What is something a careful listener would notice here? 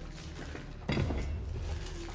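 A metal valve handle clinks as it is picked up.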